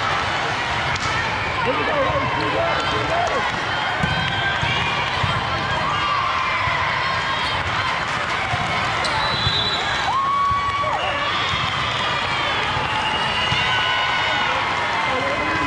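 Young women players call out to one another.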